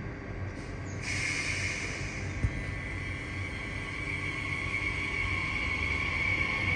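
An electric train starts pulling away with a rising whine.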